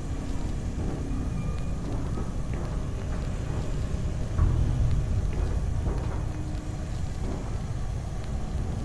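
Footsteps clank on a hollow metal floor.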